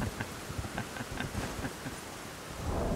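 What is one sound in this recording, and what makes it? Hooves clop on stone at a steady trot.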